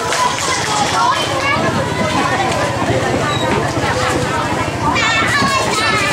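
Young children chatter and call out nearby in a lively crowd.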